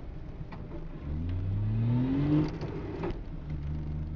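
A three-cylinder two-stroke car engine revs up as the car accelerates.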